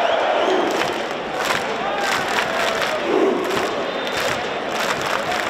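A large crowd claps in rhythm.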